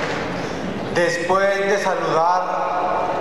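A man speaks into a microphone through loudspeakers.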